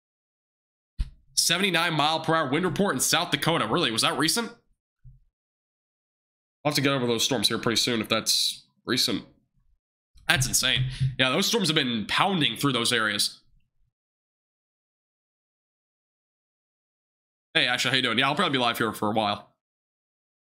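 A young man speaks with animation into a close microphone, in short bursts with pauses.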